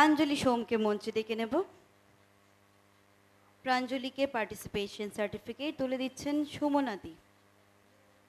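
A woman speaks with animation through a microphone and loudspeakers.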